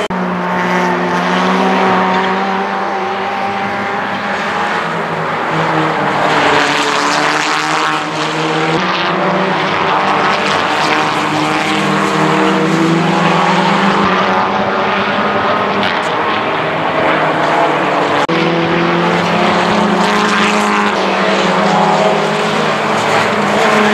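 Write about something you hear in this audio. Racing car engines roar loudly and rev up and down as the cars speed past.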